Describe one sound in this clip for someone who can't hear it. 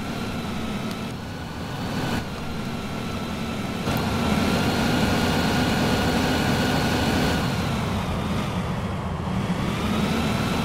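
A bus engine drones steadily as the bus drives along.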